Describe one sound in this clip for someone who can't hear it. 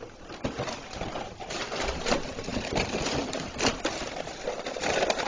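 Objects clatter and rustle.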